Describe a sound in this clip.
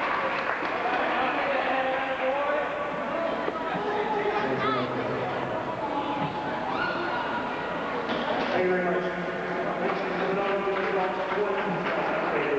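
A crowd of spectators chatters and calls out loudly in a large echoing hall.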